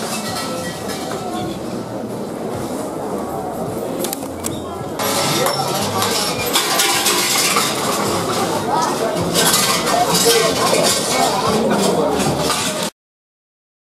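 A crowd of men, women and children chatters nearby outdoors.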